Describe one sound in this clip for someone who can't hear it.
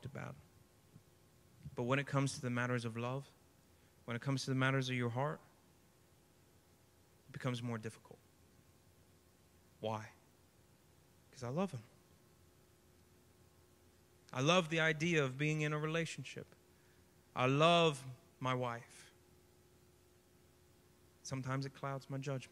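A man speaks calmly into a microphone, heard through a loudspeaker, with pauses between phrases.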